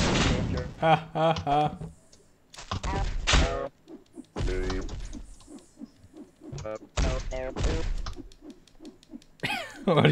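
Cartoonish thumps and whacks ring out as game characters fight.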